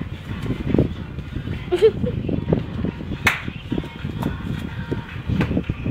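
A man's feet stamp and shuffle on a hard floor.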